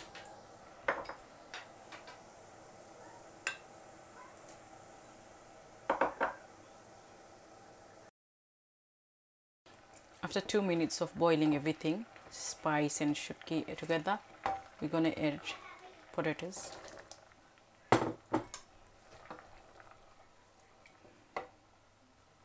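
Water bubbles as it boils in a pot.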